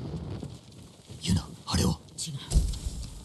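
A blade stabs into a body with a sharp thud.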